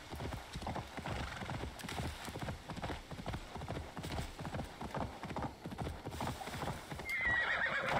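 Horse hooves thud at a steady trot on soft ground.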